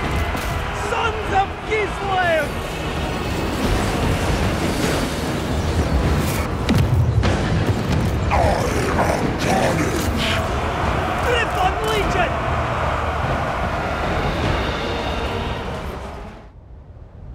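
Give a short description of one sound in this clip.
Weapons clash and armour rattles in a large, noisy battle.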